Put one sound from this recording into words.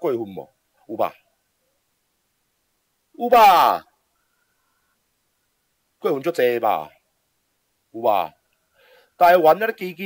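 A man speaks with animation in short bursts, close to a microphone.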